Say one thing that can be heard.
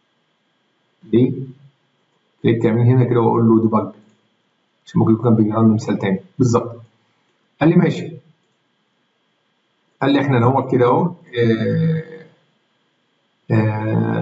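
A man speaks calmly into a close microphone, in short bursts with pauses.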